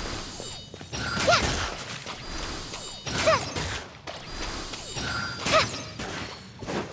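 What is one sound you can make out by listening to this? Bowstrings twang as arrows are shot.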